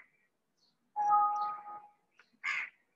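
A computer alert chime sounds once.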